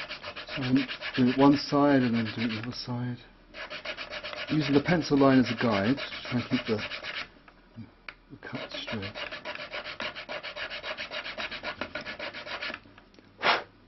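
A small file rasps quickly back and forth across wood.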